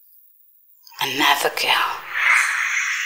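A woman speaks in a tense voice up close.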